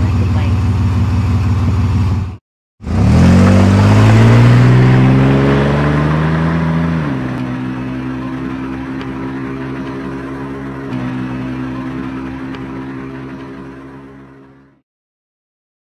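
A car engine revs up, then drives off and fades away.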